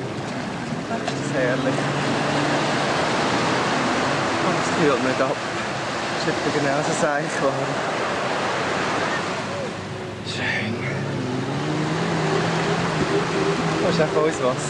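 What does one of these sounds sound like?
A man talks cheerfully close by.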